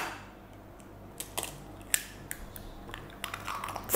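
An egg cracks against the rim of a bowl.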